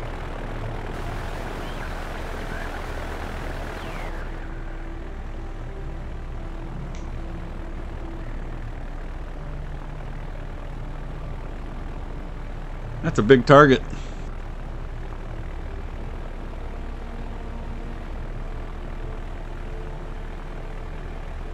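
Propeller engines of a heavy bomber drone steadily.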